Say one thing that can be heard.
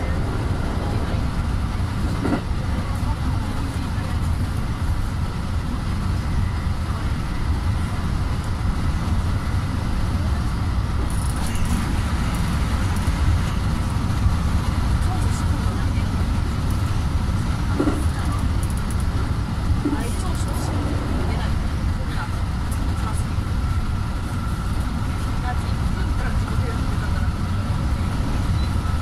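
A train rumbles steadily along the tracks from inside a cab.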